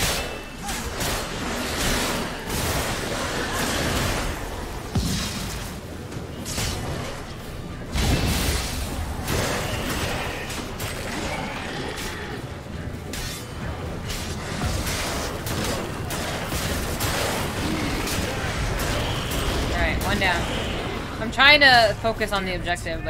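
Swords clash and magic bursts crackle in a game's battle.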